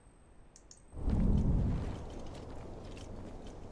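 A low rumble swells and then settles.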